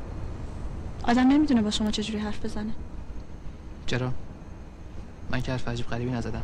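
A young woman speaks softly and sadly nearby.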